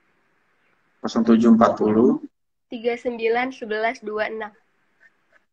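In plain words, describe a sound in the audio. A young man speaks through an online call.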